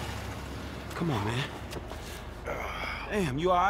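A man speaks angrily and close by.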